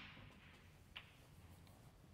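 Snooker balls knock together with a crisp clack.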